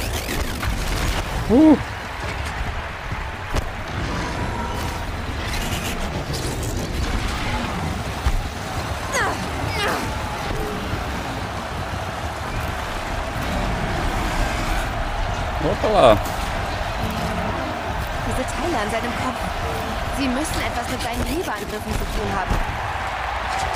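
Explosions boom and debris clatters.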